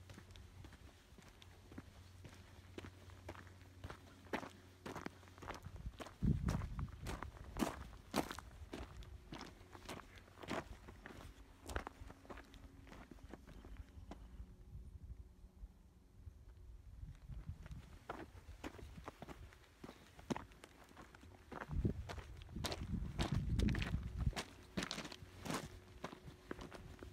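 Footsteps crunch on loose gravel.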